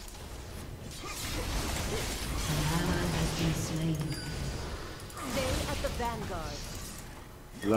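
Magic spells whoosh and crackle during a fight in a video game.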